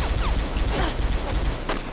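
A young woman speaks tensely.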